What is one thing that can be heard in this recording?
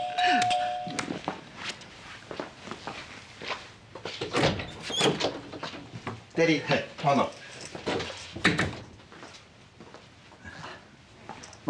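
An elderly man speaks cheerfully.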